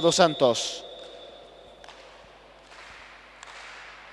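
An athlete claps his hands above his head.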